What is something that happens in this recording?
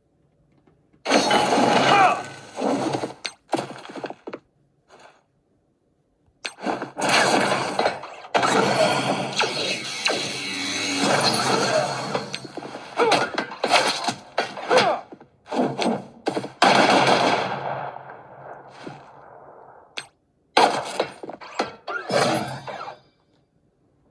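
Battle sound effects with blasts and hits play from a tablet's speaker.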